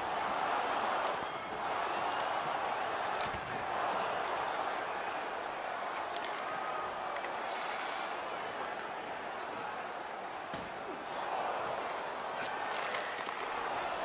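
Hockey sticks clack against a puck on ice.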